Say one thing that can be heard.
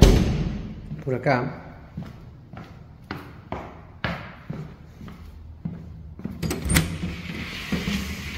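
Footsteps tread on a hard tiled floor.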